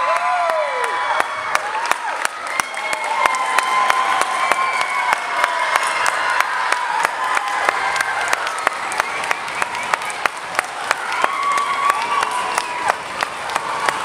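An audience claps in a hall.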